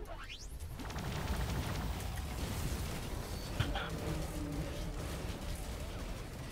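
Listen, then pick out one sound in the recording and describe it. Game weapons blast and whoosh in a loud fight.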